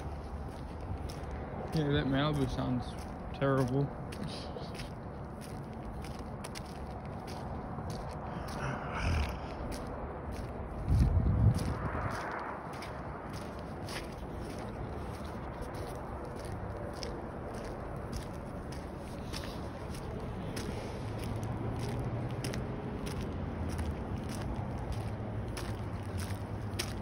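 Footsteps scuff slowly on rough asphalt.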